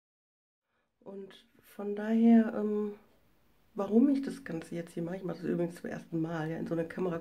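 A middle-aged woman speaks close to a microphone with animation.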